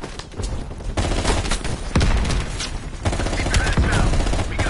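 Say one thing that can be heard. Rapid gunfire rattles in bursts close by.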